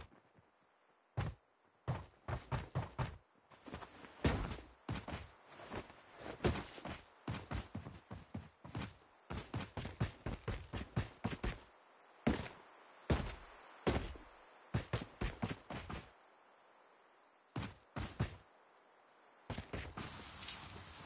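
Quick footsteps patter over wood and dirt.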